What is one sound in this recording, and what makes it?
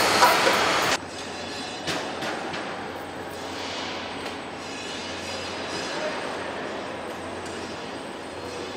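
Machinery hums steadily at a lower level.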